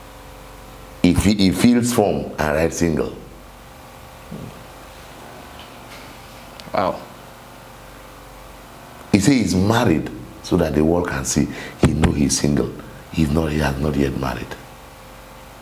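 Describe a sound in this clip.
A middle-aged man speaks with animation through a microphone, close by.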